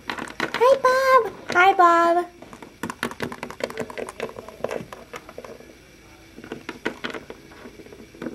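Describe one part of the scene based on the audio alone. Small plastic figures tap and scrape on a hard surface.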